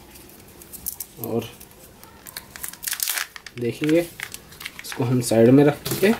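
A foil wrapper crinkles as it is peeled off.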